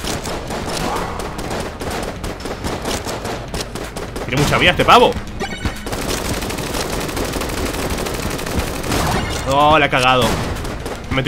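Rapid gunfire and blasts from a video game rattle on.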